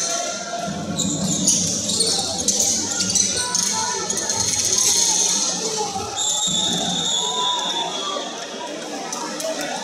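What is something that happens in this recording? A ball bounces on a wooden floor.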